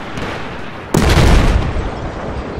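A rifle fires a single loud shot close by.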